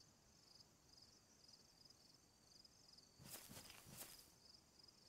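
Wind blows softly through tall grass outdoors.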